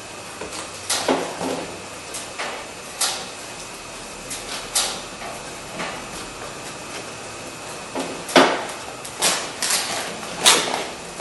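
Sharp clicks and knocks sound against a metal car door.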